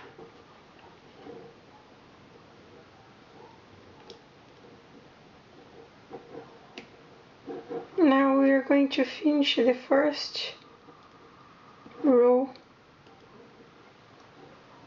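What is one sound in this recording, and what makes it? A knitting hook clicks faintly against plastic loom pegs while lifting yarn loops.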